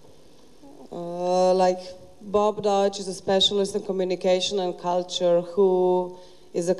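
A young woman speaks into a microphone through loudspeakers in a large echoing hall.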